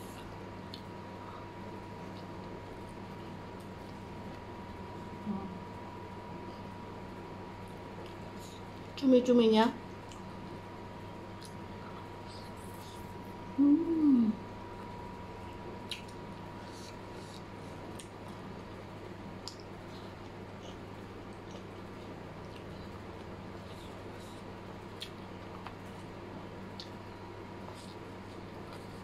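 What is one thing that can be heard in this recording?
A young woman slurps noodles and chews loudly close to a microphone.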